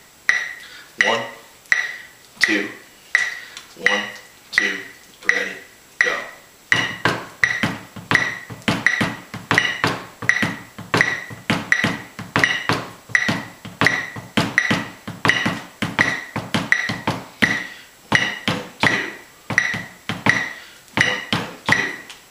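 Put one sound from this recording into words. Felt mallets strike a drum in quick rhythmic patterns.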